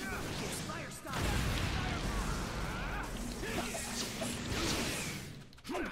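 Fireballs roar and burst.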